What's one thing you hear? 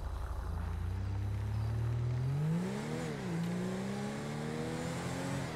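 A car engine revs up as the car drives off.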